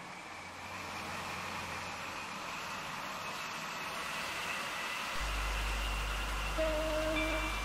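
A train rumbles along the tracks, growing louder as it speeds up.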